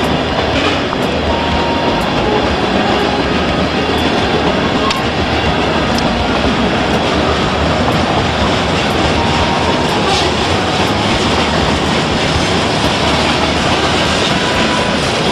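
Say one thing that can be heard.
A freight train rumbles and rattles past, close by.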